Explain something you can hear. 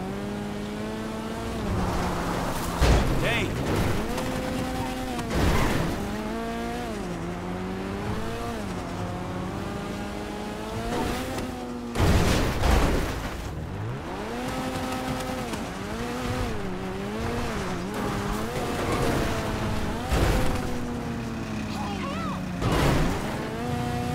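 An engine drones and revs up and down steadily.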